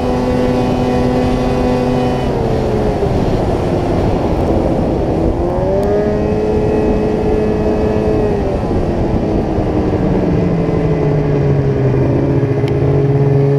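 A snowmobile engine drones loudly, its pitch rising and falling as the throttle changes.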